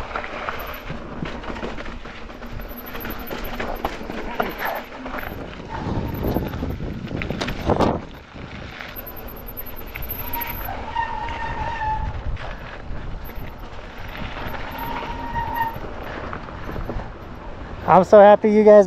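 Bike tyres rumble and rattle over a dirt trail.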